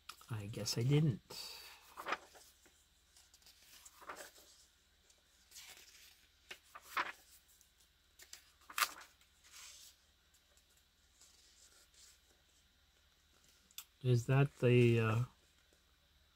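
Paper pages rustle and flip as they are turned by hand.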